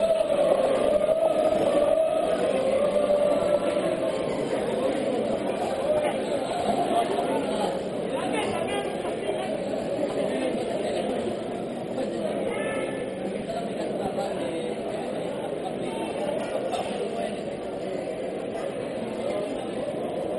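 A man speaks with animation to a group, echoing in a large hall.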